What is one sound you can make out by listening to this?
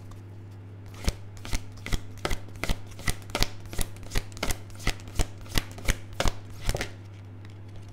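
Playing cards are shuffled with quick riffling snaps.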